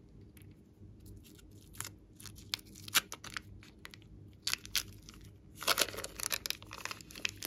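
Slime pops and crackles as fingers squeeze and stretch it.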